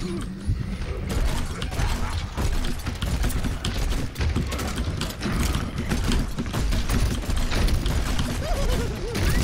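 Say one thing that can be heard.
A weapon fires rapid bursts of shots.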